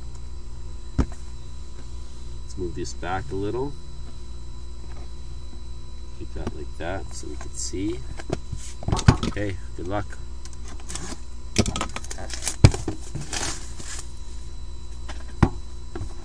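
Cardboard boxes knock and tap on a table.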